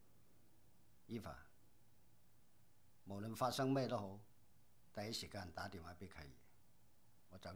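An elderly man speaks calmly up close.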